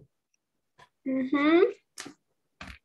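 A young girl repeats words over an online call.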